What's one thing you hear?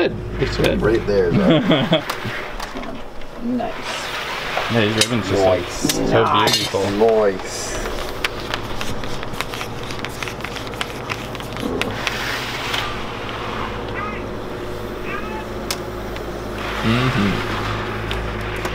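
Small plastic pieces tap and rustle against a metal counter.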